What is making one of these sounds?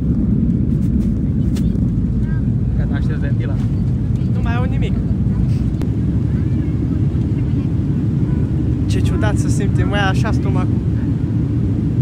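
A steady low roar of jet engines fills an airplane cabin.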